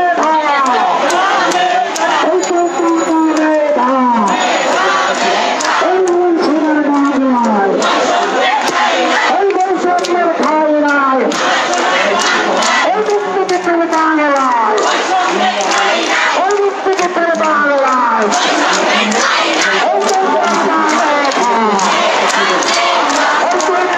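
A large crowd chants slogans loudly together outdoors.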